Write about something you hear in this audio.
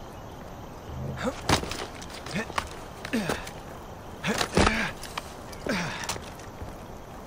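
A climber's hands and feet scrape and knock against rock.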